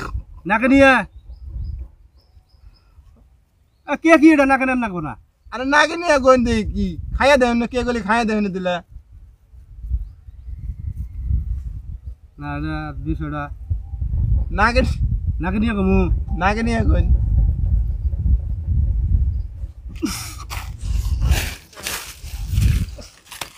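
Hands crumble and rub dry soil.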